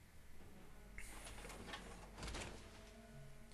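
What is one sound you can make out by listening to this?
Heavy metal armor clanks and hisses as it opens.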